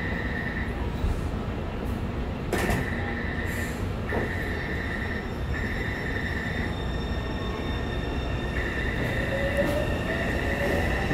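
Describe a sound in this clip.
A subway train hums and rumbles low beside a platform.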